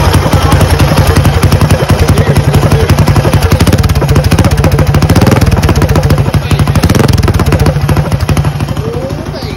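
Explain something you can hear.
A single-cylinder four-stroke mini bike engine runs with a fast, chugging beat.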